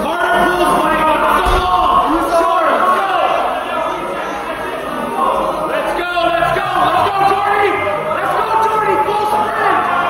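A medicine ball thuds against a wall.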